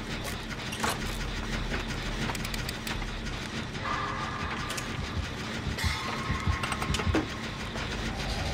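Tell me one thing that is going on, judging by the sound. A generator engine clanks and rattles while being worked on.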